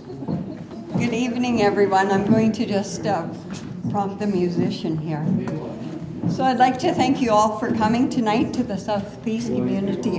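An elderly woman speaks to an audience in an echoing hall.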